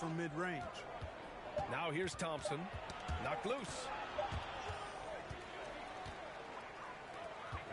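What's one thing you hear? A basketball thumps on a hardwood floor.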